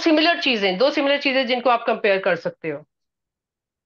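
A middle-aged man speaks calmly through a microphone, as over an online call.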